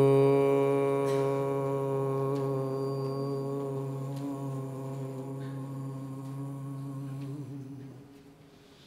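A man hums a long, steady chant into a microphone, slowly fading away.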